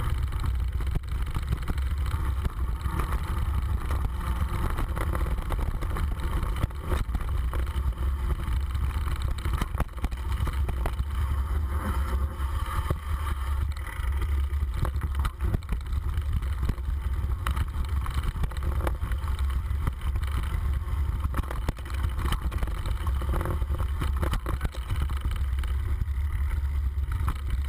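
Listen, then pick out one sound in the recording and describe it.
Tyres crunch and rattle over a rough dirt trail.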